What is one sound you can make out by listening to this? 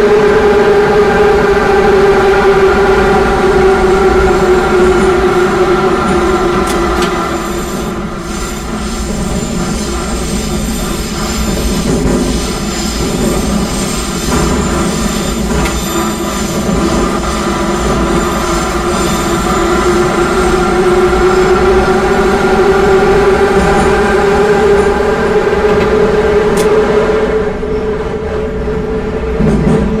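A train's electric motors hum and whine steadily as it runs through a tunnel.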